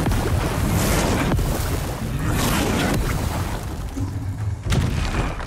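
A heavy creature stomps and thuds.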